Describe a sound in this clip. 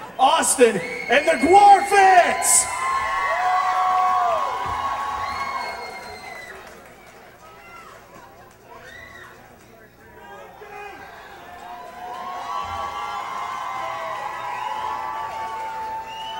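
An electric guitar plays loudly through amplifiers.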